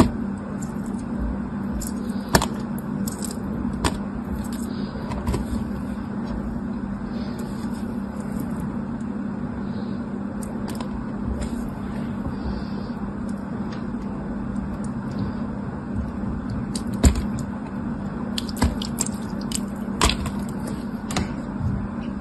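A knife scrapes and taps against brittle clear pieces, which crackle and snap.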